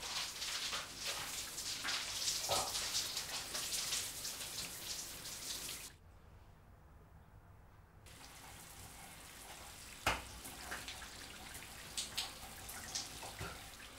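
Shower water sprays and splashes loudly.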